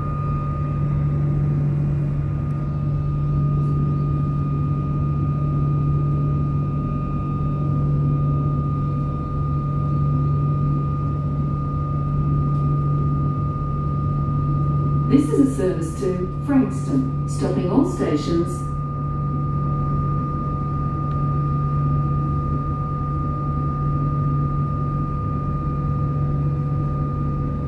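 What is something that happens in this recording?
A train hums steadily from inside the carriage, with a steady high whine.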